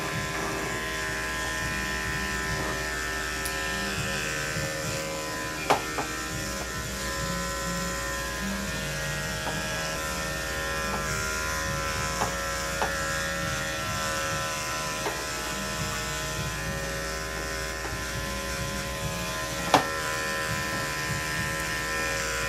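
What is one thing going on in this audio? Electric clippers hum steadily.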